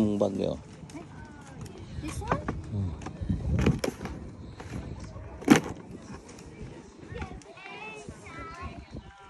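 A wheelbarrow wheel rolls and rattles over pavement.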